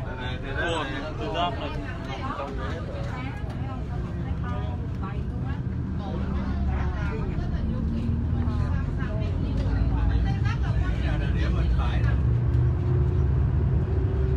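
A vehicle engine rumbles steadily as it drives along.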